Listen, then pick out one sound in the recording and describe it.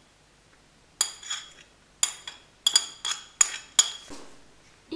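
A spoon scrapes and taps against a plate.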